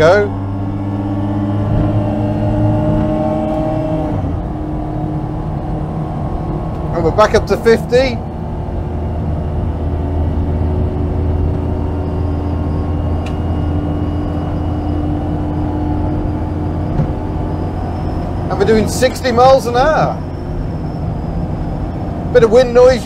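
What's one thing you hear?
A small car engine hums steadily while driving.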